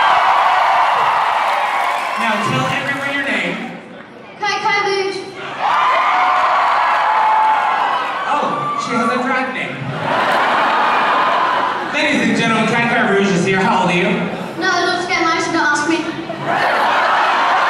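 An adult speaks with animation through a microphone in a large echoing hall.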